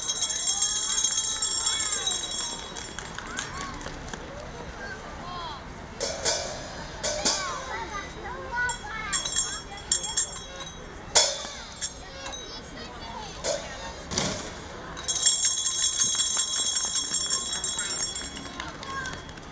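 Handbells ring in bright, jingling bursts.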